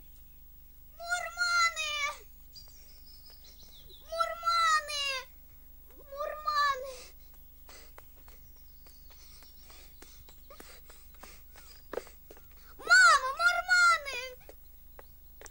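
A child shouts repeatedly from a distance outdoors.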